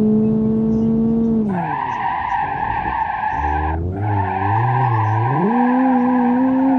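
A car engine revs high, drops sharply, then climbs again.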